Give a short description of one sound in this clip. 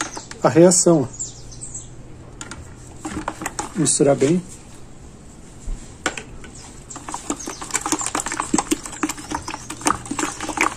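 A plastic spatula stirs and scrapes thick liquid in a plastic jug with quick wet clicks.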